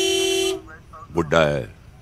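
An older man speaks calmly nearby.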